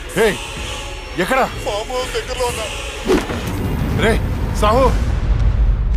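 A man cries out in distress.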